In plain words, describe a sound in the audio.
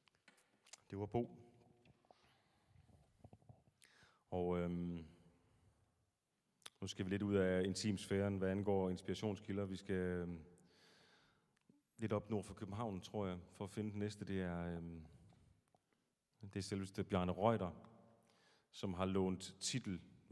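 A man sings into a microphone in a reverberant hall.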